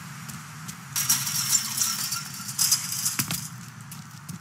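A chain-link fence rattles as a man climbs over it.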